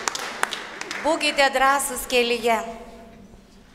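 Several women sing together in a large echoing hall.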